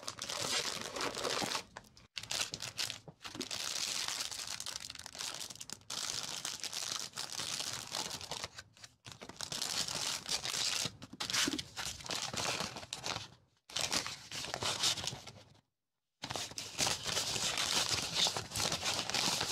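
Fingers leaf through a stack of paper tickets.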